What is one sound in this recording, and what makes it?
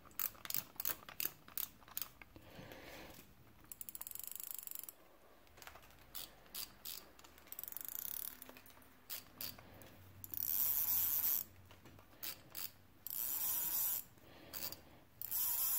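Small metal parts click and tick as fingers turn a reel.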